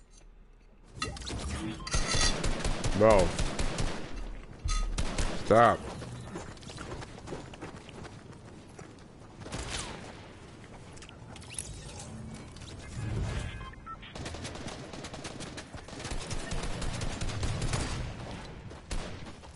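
Video game sound effects and music play loudly.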